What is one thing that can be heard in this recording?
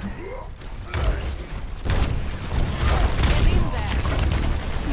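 Video game gunfire and blasts crackle loudly.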